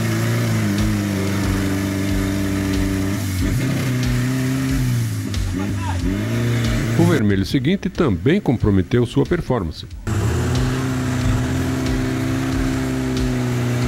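An off-road vehicle's engine roars and revs hard as it climbs.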